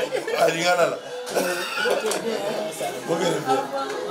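A middle-aged man laughs heartily nearby.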